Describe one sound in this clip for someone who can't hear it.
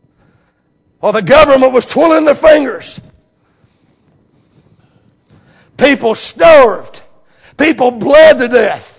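A middle-aged man preaches with animation into a microphone, pausing between phrases.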